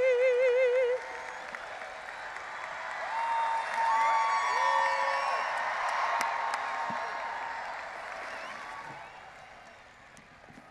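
A crowd cheers and applauds outdoors.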